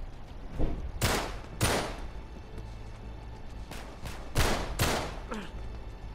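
Pistol shots ring out with a short echo.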